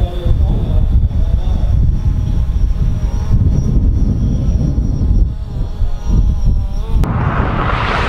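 A car engine roars as a car speeds closer, its pitch rising through the gears.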